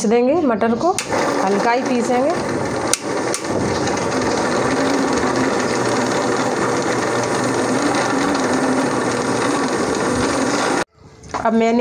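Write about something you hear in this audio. An electric blender whirs loudly and steadily.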